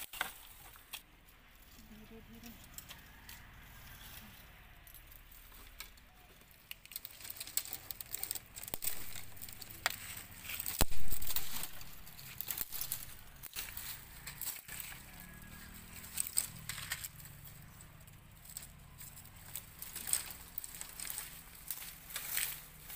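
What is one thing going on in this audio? Dry twigs and stems rustle and snap as they are pulled.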